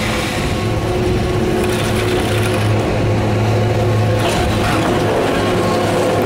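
A chairlift's machinery drones steadily as it nears the station.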